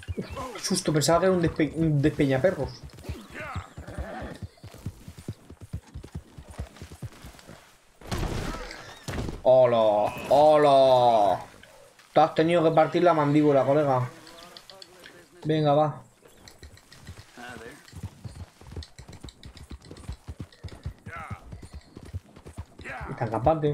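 Horse hooves thud in a quick gallop.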